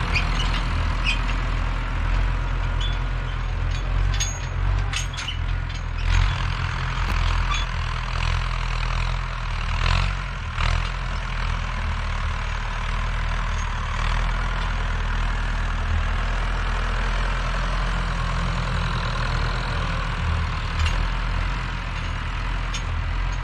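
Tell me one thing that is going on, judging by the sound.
A Massey Ferguson 165 tractor's diesel engine chugs under load at a distance, pulling a harrow.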